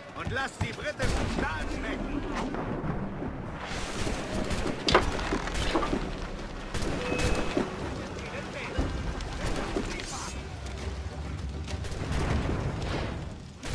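Cannons fire with loud booms.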